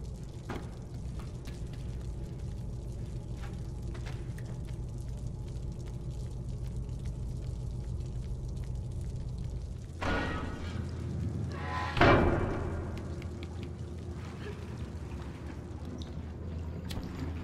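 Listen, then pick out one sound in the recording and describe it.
Small footsteps patter across a creaky wooden floor.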